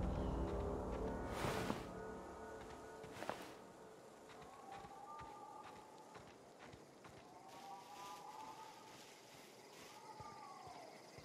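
Footsteps tread on dry ground and grass.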